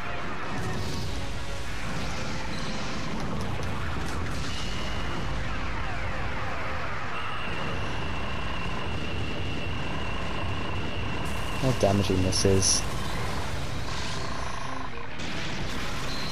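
Water splashes and churns as giant monsters wade and fight.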